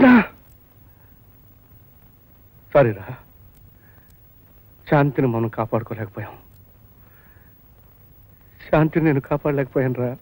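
A man speaks in short, distressed bursts.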